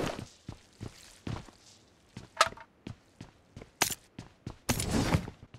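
Short clicks of items being picked up sound repeatedly.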